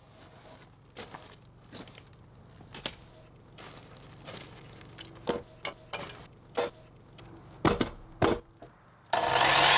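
Wooden boards knock and clatter as they are handled.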